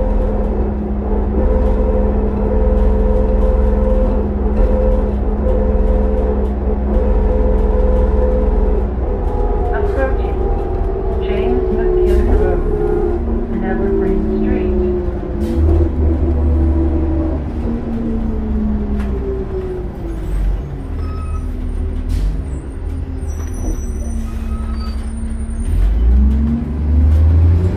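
A bus engine drones steadily from inside the bus, its pitch slowly falling as the bus slows.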